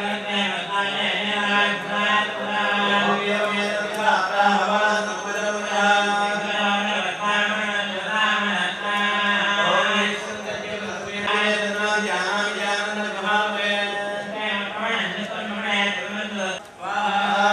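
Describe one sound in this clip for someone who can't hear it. Several men chant together in steady, droning voices through microphones.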